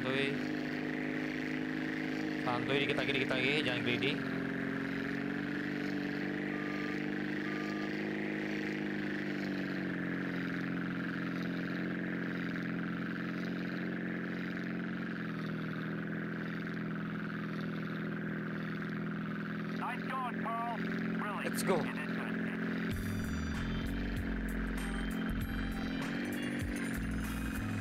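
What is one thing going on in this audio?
A propeller plane engine drones steadily, its pitch rising and falling.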